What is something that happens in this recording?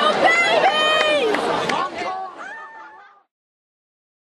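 A crowd cheers loudly outdoors and fades away.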